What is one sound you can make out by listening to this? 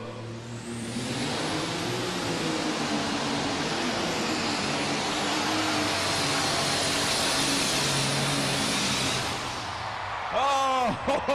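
A tractor engine roars loudly at full power.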